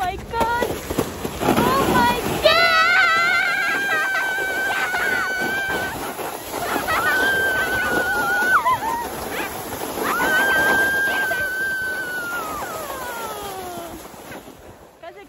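A sled hisses over the snow.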